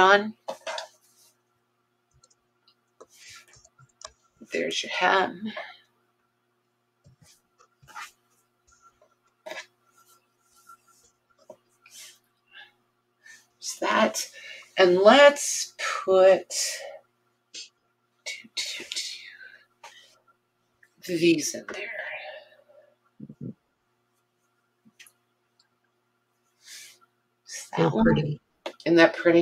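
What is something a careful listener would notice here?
Cloth rustles softly as it is handled and laid flat.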